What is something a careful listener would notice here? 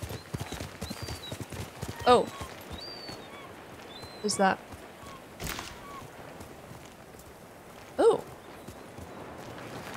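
A horse's hooves thud as it gallops over grass.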